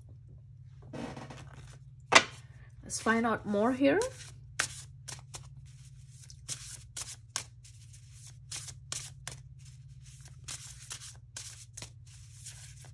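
Playing cards shuffle and riffle with quick crisp flicks.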